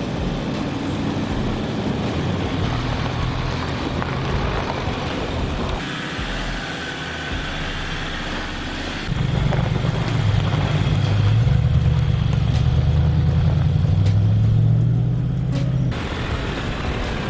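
A vehicle engine rumbles as it drives slowly.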